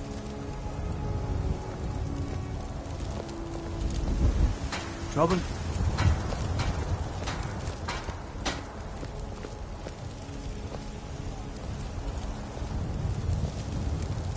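Footsteps tread on cobblestones.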